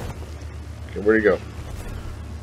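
A large bird lets out a short, harsh cry.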